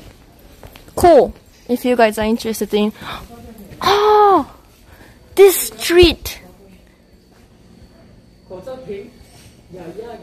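A young woman talks and squeals playfully close by.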